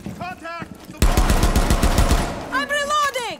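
A rapid burst of gunfire rings out.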